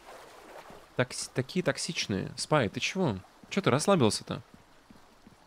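A young man talks with animation into a microphone close by.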